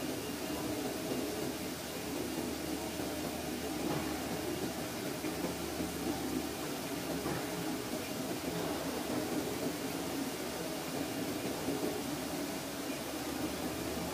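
A cutting machine hums and whirs steadily as its head moves back and forth.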